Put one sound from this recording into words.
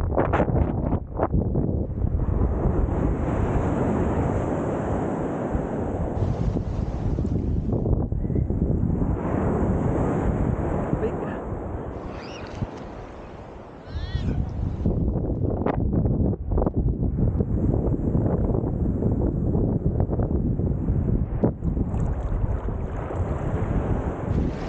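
Water splashes and sloshes close by as a swimmer strokes through it.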